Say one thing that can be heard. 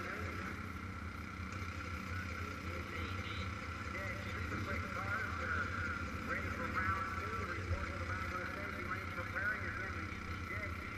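A motorcycle engine idles with a steady low rumble nearby.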